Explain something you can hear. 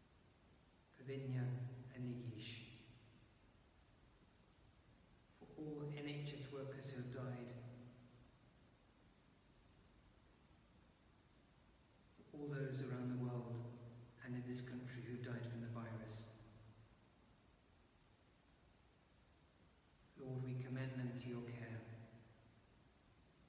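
An elderly man chants slowly in phrases, echoing in a large stone hall.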